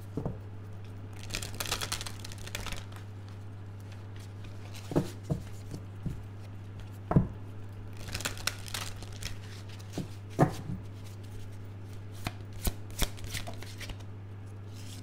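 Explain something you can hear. Playing cards are shuffled and riffled, with soft rustling and flicking.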